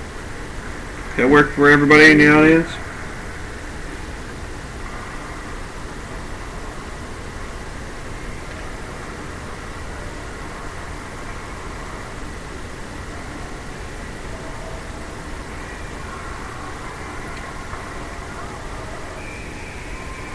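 Spectators murmur in a large echoing hall.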